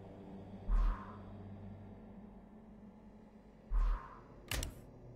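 A game chime sounds as a skill is upgraded.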